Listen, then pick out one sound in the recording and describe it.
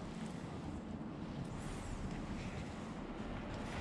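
Tree branches rustle as a hand grabs and shakes them.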